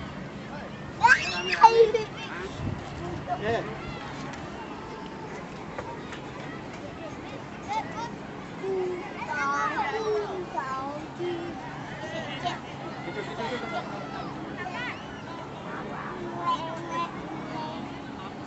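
Young men and women talk and call out nearby outdoors.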